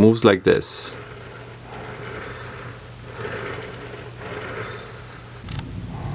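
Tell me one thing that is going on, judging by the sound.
A carriage with recirculating plastic balls slides along an aluminium rail.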